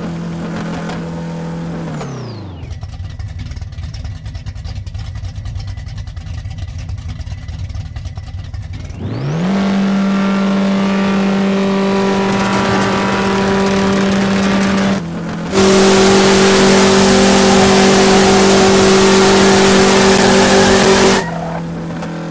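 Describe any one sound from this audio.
A car engine idles with a deep hum, then revs up loudly and roars as the car races off.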